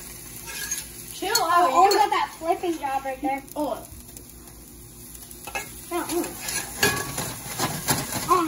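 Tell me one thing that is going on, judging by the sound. A spatula scrapes and clatters against a pan.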